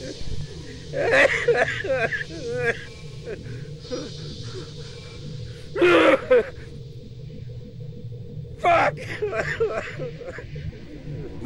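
A man shouts angrily and pants.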